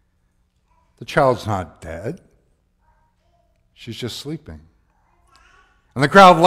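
A man speaks slowly and calmly through a microphone in a large echoing hall.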